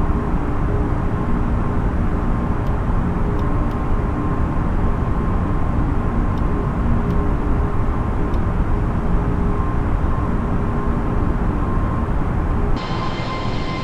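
Jet engines hum steadily, muffled as if heard from inside the cabin.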